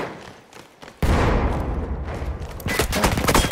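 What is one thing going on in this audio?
Loud explosions rumble outdoors nearby.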